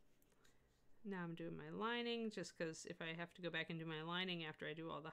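A woman speaks calmly, close to a microphone.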